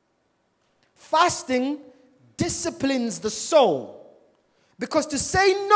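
A man speaks with animation into a microphone over loudspeakers in a large echoing hall.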